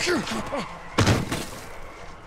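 A heavy body slams hard onto the ground.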